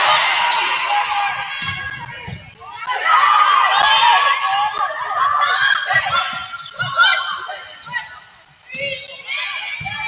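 Sneakers squeak sharply on a hard court floor in a large echoing gym.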